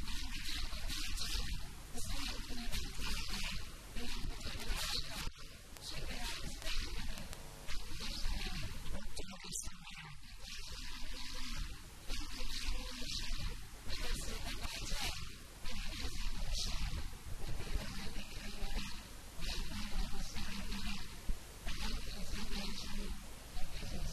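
A young man speaks into a microphone with animation, heard through a loudspeaker in an echoing hall.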